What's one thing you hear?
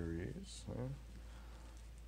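A paper card rustles in a hand.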